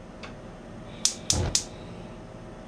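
A gas stove igniter clicks.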